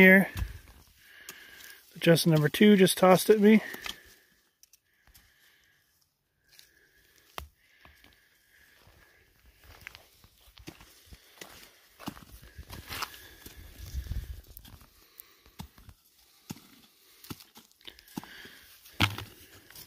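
Small stones scrape and clatter as they are picked up from the ground.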